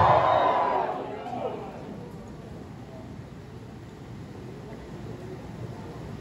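A large crowd murmurs quietly.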